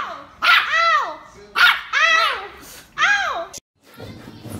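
A small puppy yaps in high, sharp barks.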